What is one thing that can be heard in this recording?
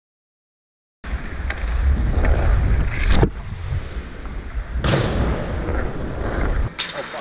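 Wind rushes past a moving skater.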